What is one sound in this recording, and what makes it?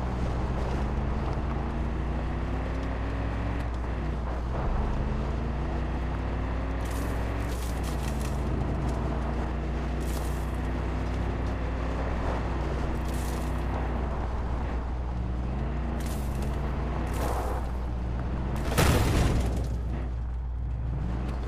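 A truck engine hums steadily and shifts in pitch.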